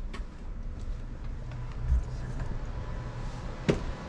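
A door latch clicks and a door swings open.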